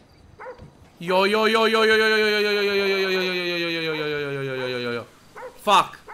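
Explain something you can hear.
A young man draws out a long, falling, sung or groaned sound into a close microphone.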